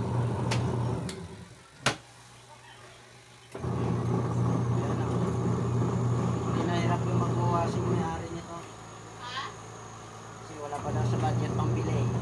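A twin-tub washing machine's motor whirs, with its noisy gearbox grinding.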